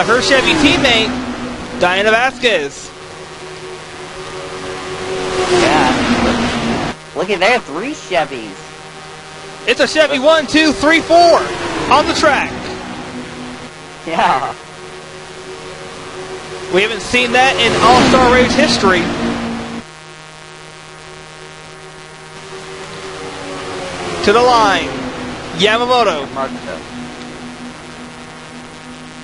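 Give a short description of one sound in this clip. Racing car engines drone steadily and roar as cars pass by at speed.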